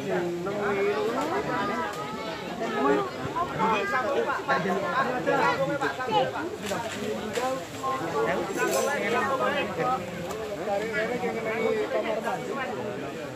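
Several men talk and call out to each other outdoors, close by.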